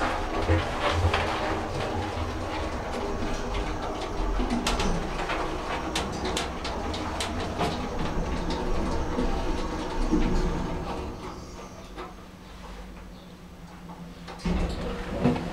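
A lift car hums and rattles as it moves.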